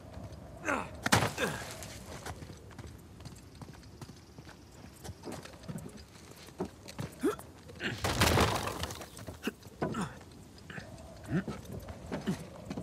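Heavy thuds sound as someone climbs and lands on wooden beams.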